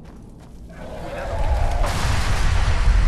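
A man shouts a warning.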